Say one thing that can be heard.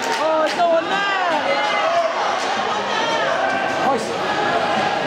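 Spectators shout in an echoing rink.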